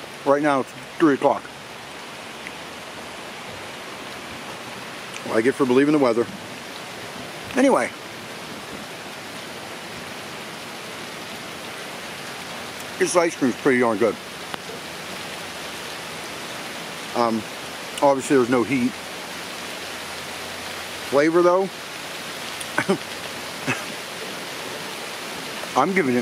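A man speaks in short, casual bursts close to the microphone.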